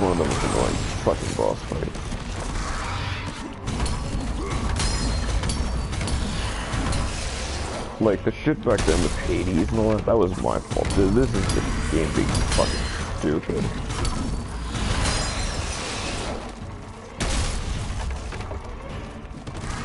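Heavy blows thud and slam in a violent fight.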